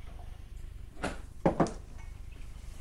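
A bottle clinks down on a wooden table.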